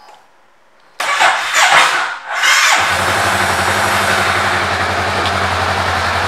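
A motorcycle engine starts up and then idles with a steady low rumble.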